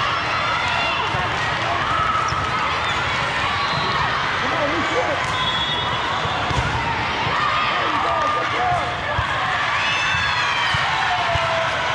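A crowd of young people chatters and calls out in a large echoing hall.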